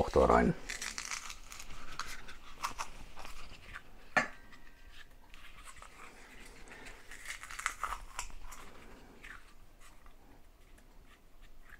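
A garlic press squeezes and crunches garlic.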